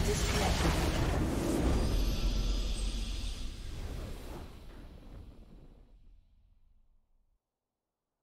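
A triumphant game fanfare swells and then slowly fades out.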